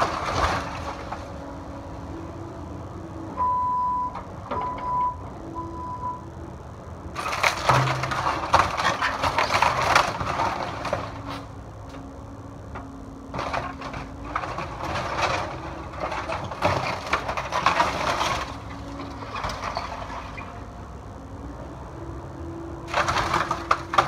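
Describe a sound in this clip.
A diesel excavator engine hums and whines steadily nearby.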